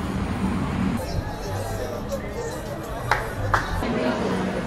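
A busy street crowd murmurs nearby.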